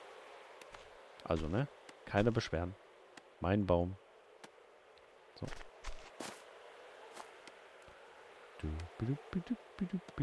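An axe chops into a wooden log with sharp knocks.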